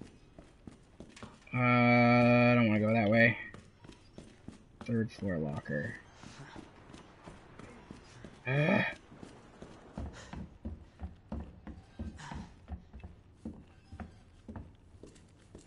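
Slow footsteps tread on a hard floor.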